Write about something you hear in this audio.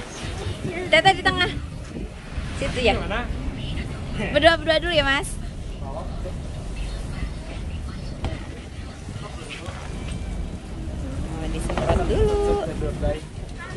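A young woman talks excitedly nearby.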